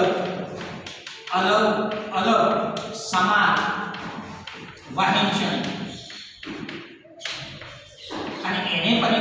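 An elderly man speaks loudly and steadily, as if lecturing, in an echoing room.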